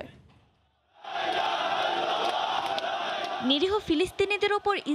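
A large crowd roars and chants loudly outdoors.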